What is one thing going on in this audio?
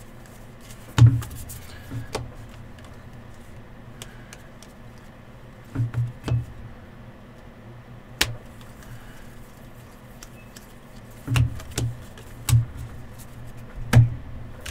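Stacks of cards thump softly against a table.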